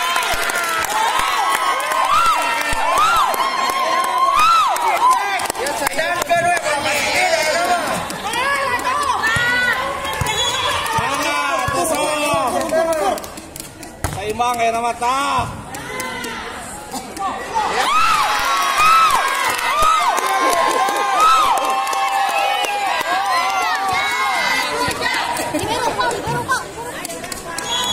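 A volleyball is struck by hands with sharp slaps.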